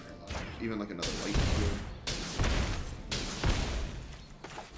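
A fiery game effect whooshes and roars.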